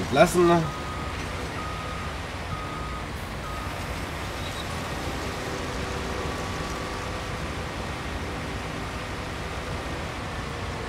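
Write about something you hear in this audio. A combine harvester engine rumbles steadily as the machine drives.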